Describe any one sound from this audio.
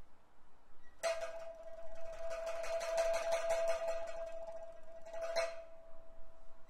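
A stringed instrument plays along.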